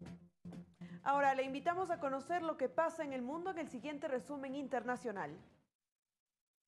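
A young woman speaks calmly and clearly into a microphone, reading out news.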